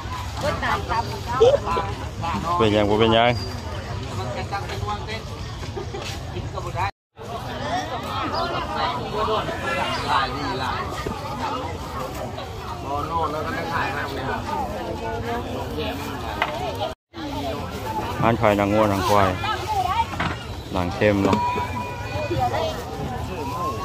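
A crowd of market shoppers chatters all around outdoors.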